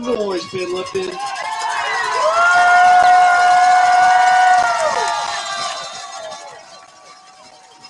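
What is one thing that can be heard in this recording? A crowd cheers and roars loudly outdoors.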